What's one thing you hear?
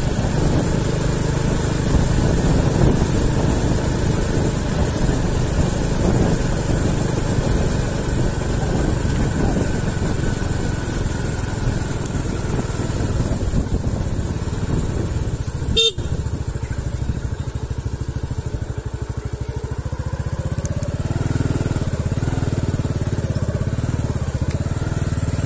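Tyres crunch and rumble over a bumpy dirt road.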